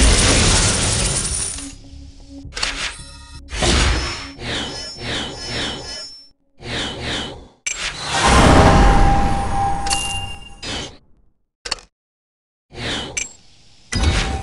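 Chiming game sound effects play in short bursts.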